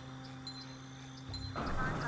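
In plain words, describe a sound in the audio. A bright magical sparkle chimes.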